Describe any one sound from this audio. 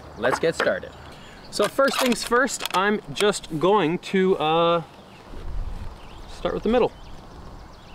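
A man talks calmly and clearly, close by, outdoors.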